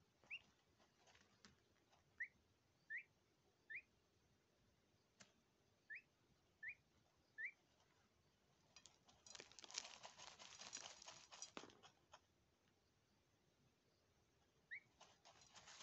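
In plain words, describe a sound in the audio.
A duckling peeps in short, high chirps.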